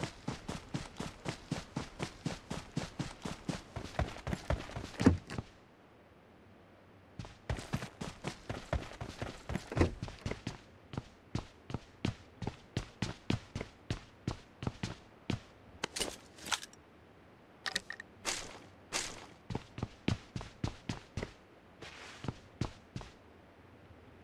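Quick footsteps run steadily, with a short pause partway through.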